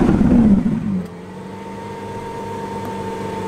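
A sports car engine idles with a steady low hum.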